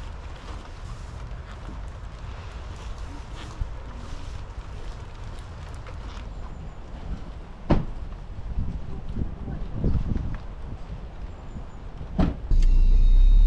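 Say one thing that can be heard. Light rain patters steadily outdoors.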